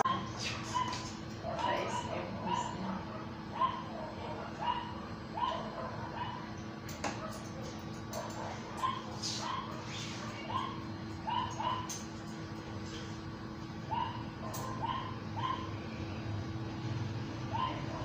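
Scissors snip rapidly.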